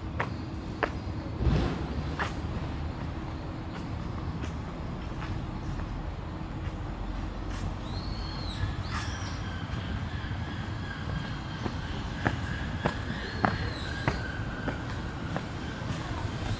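Footsteps tap on stone paving outdoors.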